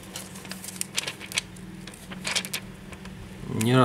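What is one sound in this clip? Thin plastic film crinkles and clicks under fingers.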